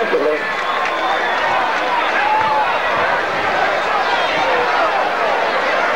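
A stadium crowd chatters and cheers in a steady roar outdoors.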